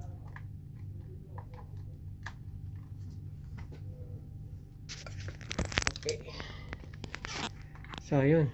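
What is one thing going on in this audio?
Plastic parts of a game controller click and rattle in someone's hands.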